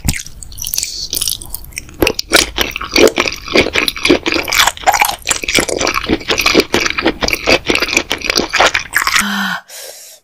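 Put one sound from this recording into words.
A woman slurps noodles and chews noisily close by.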